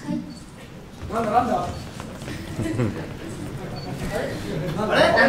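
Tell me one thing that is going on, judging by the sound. A young woman speaks cheerfully through a microphone in a hall.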